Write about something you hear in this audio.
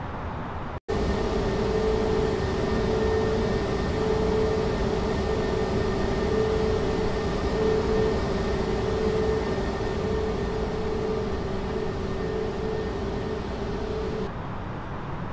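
Jet engines roar loudly with a steady high whine.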